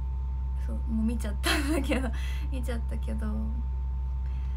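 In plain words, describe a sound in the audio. A young woman laughs briefly.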